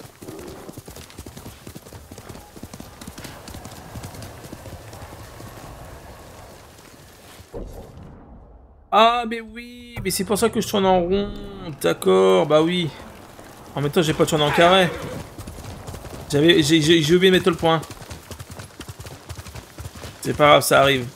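A horse's hooves thud on a dirt path.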